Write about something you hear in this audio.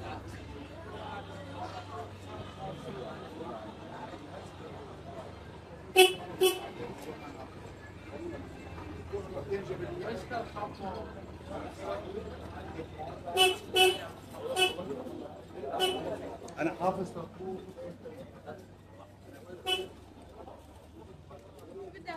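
A crowd of people chatter all around in a busy street market.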